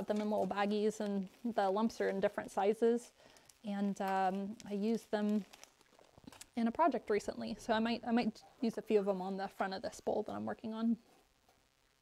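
A woman talks calmly and explains, close to a microphone.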